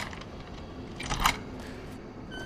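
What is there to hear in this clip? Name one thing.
A metal door lock clanks.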